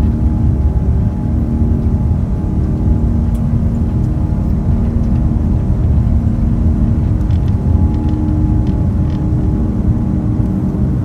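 Jet engines roar steadily from inside a plane's cabin as it speeds down a runway.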